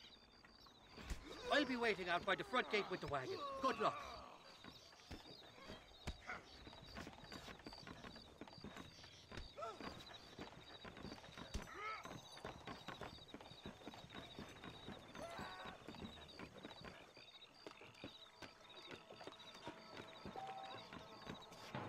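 Boots thud on wooden boards as a man walks and runs.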